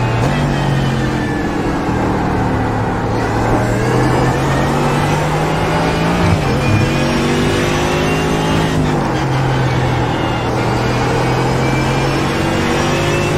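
A racing car engine roars loudly, climbing in pitch as it speeds up and dropping sharply at each gear change.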